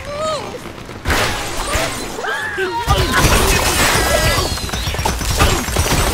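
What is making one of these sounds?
Game structures crash and crumble as birds smash into them.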